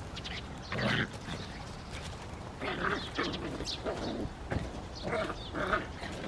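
Puppies yip and growl playfully while wrestling.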